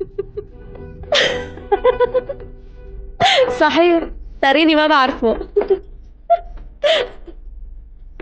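A woman laughs cheerfully close by.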